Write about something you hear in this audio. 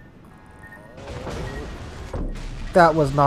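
Heavy guns fire with loud booms.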